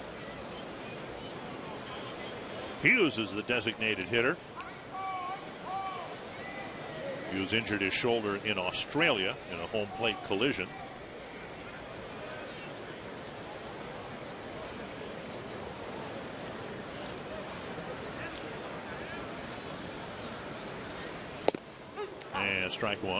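A ballpark crowd murmurs in the open air.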